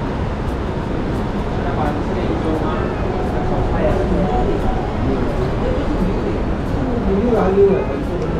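A young man slurps soup noisily.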